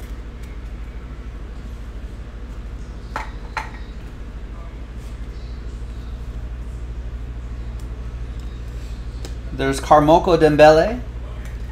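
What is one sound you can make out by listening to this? Trading cards shuffle and flick in a man's hands.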